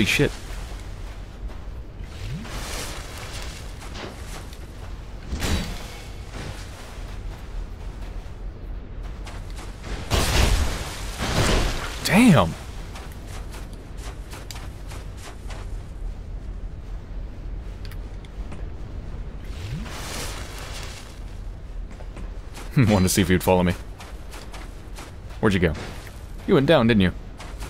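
Armoured footsteps crunch steadily on sand.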